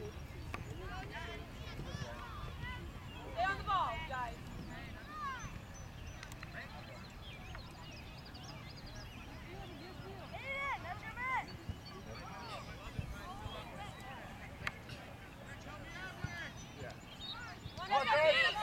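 Players call out to each other across an open field, far off.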